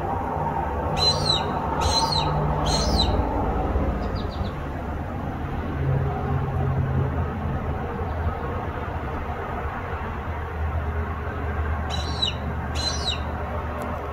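A hawk gives several sharp, high screeches close by.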